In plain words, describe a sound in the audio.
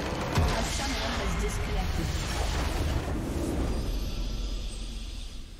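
A base explodes with a deep rumbling blast.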